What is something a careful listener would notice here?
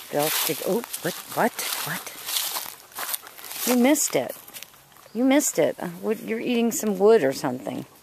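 Dry leaves rustle under a dog's paws.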